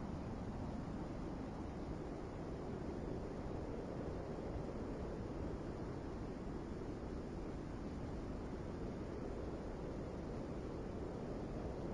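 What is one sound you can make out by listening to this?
A large ship's engines rumble steadily over open water.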